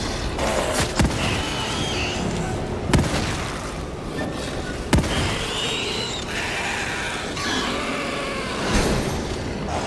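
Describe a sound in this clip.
Gunshots ring out with echoes.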